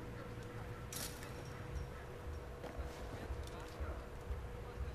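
A chain-link fence rattles.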